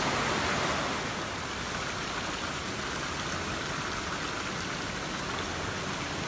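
A stream trickles gently over stones.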